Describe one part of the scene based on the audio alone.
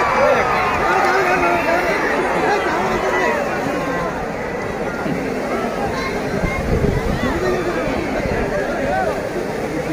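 Waves wash gently onto the shore.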